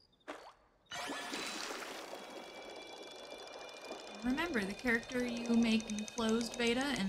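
A fishing reel whirs as a line is reeled in.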